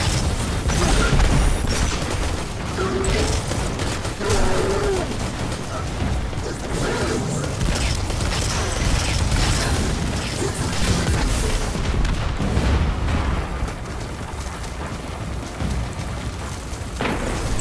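Gunshots fire rapidly in bursts.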